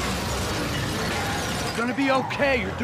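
Debris crashes and hisses after an explosion.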